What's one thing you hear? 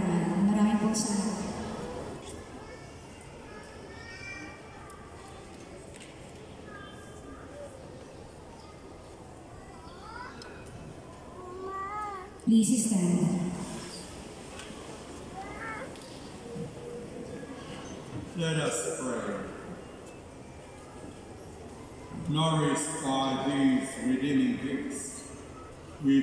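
A large crowd murmurs softly in a big echoing hall.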